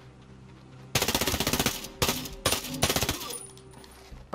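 Rapid gunshots fire in quick bursts.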